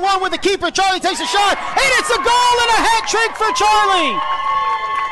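Young women shout and cheer excitedly outdoors.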